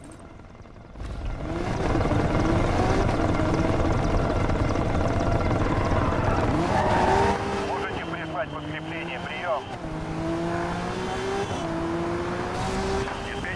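A sports car engine roars and revs at high speed.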